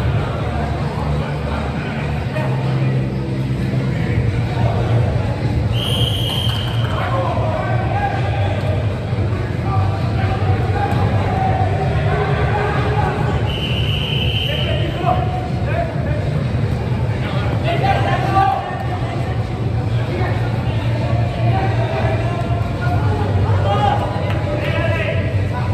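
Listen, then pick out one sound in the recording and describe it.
Young men shout and call to each other in a large echoing hall.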